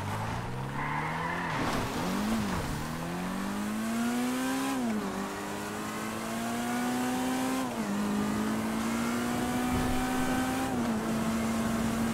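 A sports car engine revs hard and climbs through the gears, dropping in pitch at each gear change.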